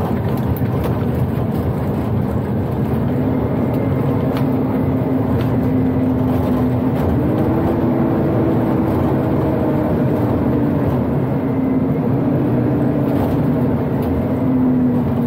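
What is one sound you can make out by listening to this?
A truck engine drones steadily, its pitch rising and falling with the gears.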